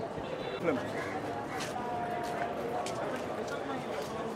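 A crowd of people chatters in the open air.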